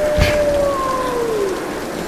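Water rushes nearby.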